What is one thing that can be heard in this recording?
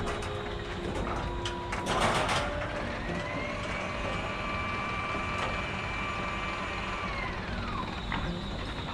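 A crane motor whines, rising in pitch, holding steady, then dropping away.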